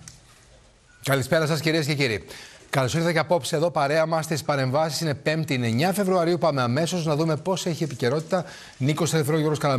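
A middle-aged man speaks calmly and clearly into a studio microphone.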